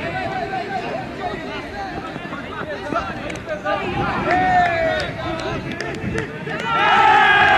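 Young men call out to each other in the distance.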